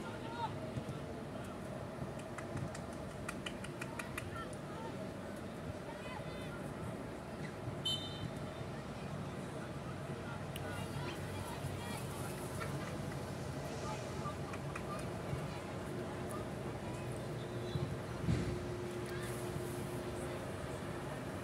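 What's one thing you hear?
Players shout to each other across an open field outdoors.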